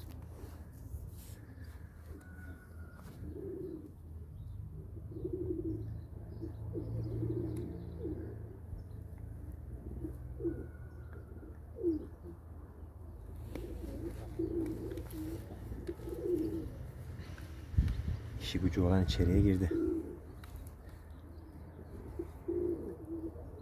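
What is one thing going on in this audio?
Pigeons coo softly nearby.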